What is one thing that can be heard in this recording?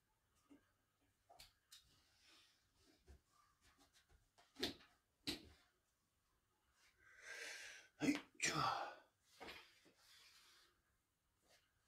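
Fabric rustles as a man handles a cloth cover.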